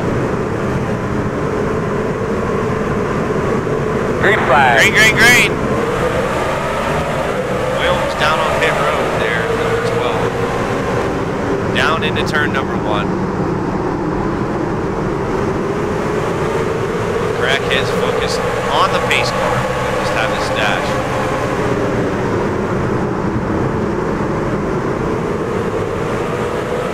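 Race car engines roar steadily as a pack of cars laps the track.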